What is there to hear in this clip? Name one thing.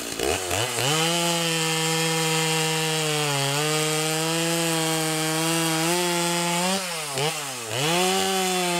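A chainsaw cuts steadily through a log.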